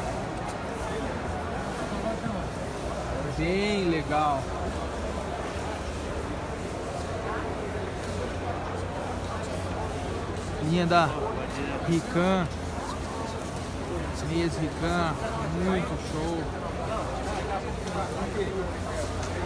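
A crowd murmurs steadily in a large, echoing space.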